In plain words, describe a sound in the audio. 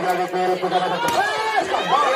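A volleyball is spiked with a sharp slap.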